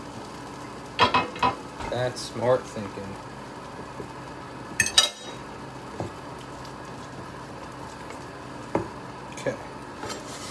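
A metal spatula scrapes and clinks against a pan.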